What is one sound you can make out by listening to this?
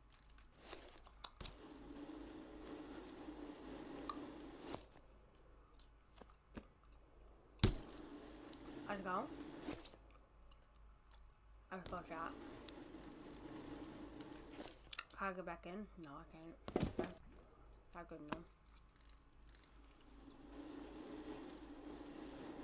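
Bicycle tyres roll steadily over smooth concrete.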